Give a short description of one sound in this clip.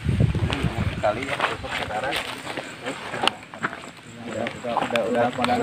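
Young men talk with animation nearby outdoors.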